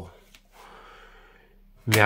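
Trading cards rustle softly as hands handle them.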